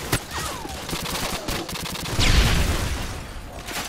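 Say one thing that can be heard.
Gunshots crack nearby in quick bursts.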